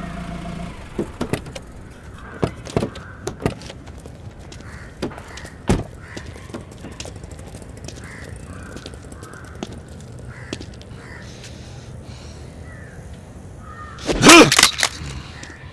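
Heavy footsteps thud on pavement.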